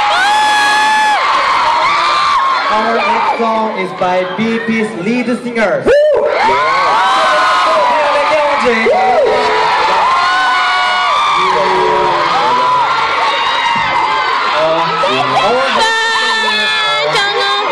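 A crowd of young women screams and cheers loudly and continuously.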